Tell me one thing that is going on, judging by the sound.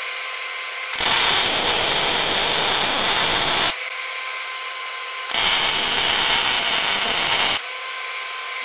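An electric welder crackles and hisses in loud steady bursts.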